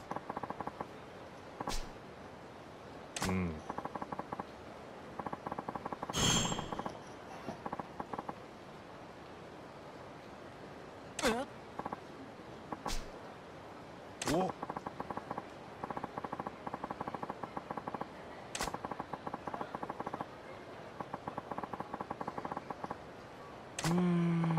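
Rapid soft electronic blips tick in quick bursts.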